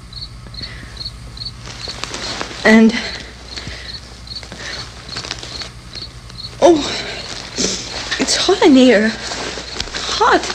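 Paper tissue rustles and crinkles in a woman's hands.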